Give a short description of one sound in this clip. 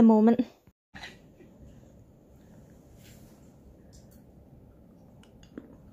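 A woman chews softly.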